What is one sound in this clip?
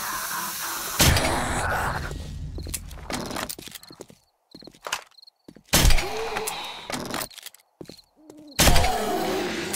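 A crossbow fires with a sharp thwack.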